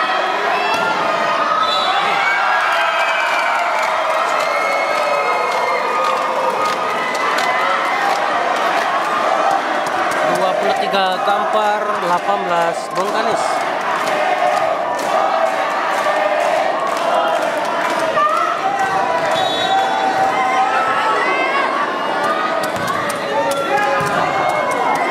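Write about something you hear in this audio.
A volleyball thumps off players' hands.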